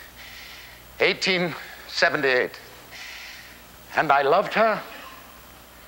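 An elderly man declaims loudly and theatrically in short bursts.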